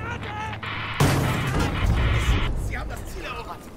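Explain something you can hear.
An explosion booms outside.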